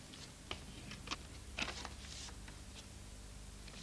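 Paper rustles and crinkles close by.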